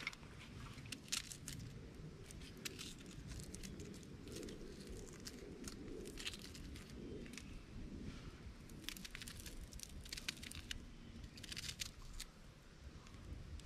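Fingers peel the dry skin off a small onion with a soft rustle.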